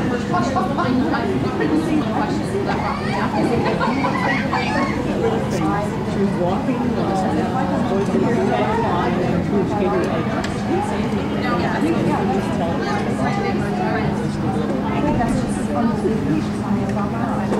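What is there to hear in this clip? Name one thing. Many children chatter and call out in a large echoing hall.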